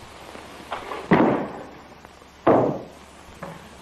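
A body thuds heavily onto a floor.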